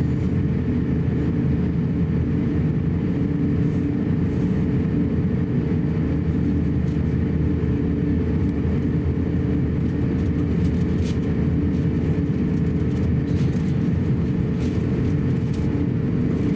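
An airliner rumbles over the runway while taxiing.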